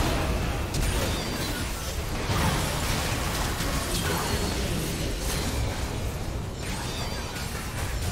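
Spell blasts and magic effects crackle and boom in a fast game fight.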